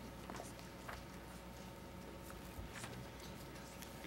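Papers rustle as a man leafs through them.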